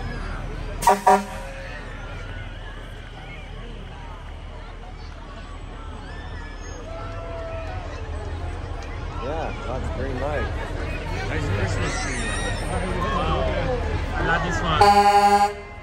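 A fire truck horn blares in short loud blasts.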